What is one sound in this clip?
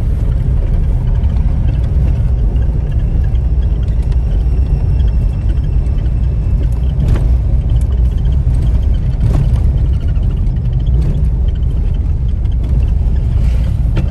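A car's engine drones, heard from inside.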